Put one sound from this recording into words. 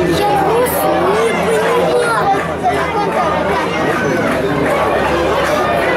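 A crowd of spectators chatters and murmurs outdoors.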